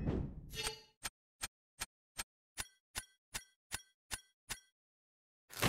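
A countdown timer ticks once per second.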